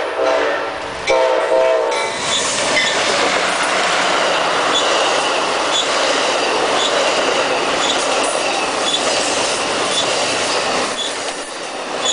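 A passenger train roars past close by.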